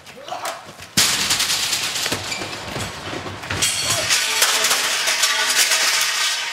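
Heavy bodies crash loudly against metal cases and the floor.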